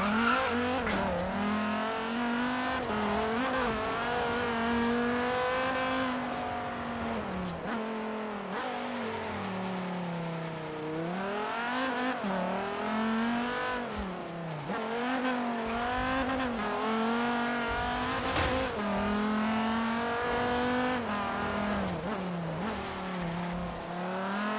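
A car engine roars loudly, revving up and down as it races along.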